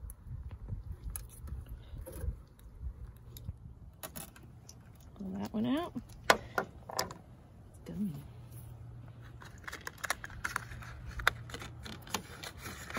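Small plastic parts click and rattle as they are handled up close.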